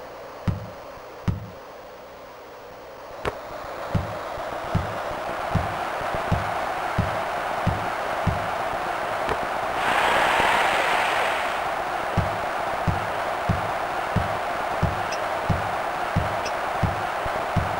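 A basketball bounces in steady, dull thuds as a player dribbles.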